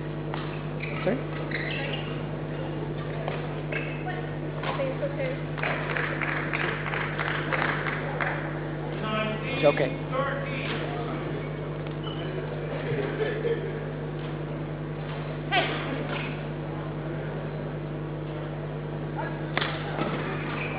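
A badminton racket hits a shuttlecock with sharp pops.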